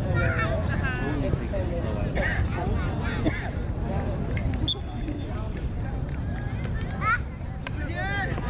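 Young women and girls call out and shout across an open field.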